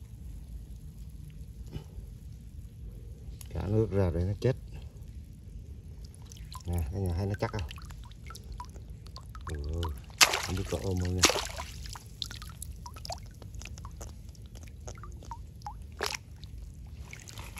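Shallow water splashes and sloshes as a hand moves through it.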